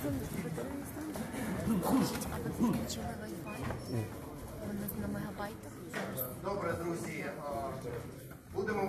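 A man speaks through a loudspeaker in a large echoing hall.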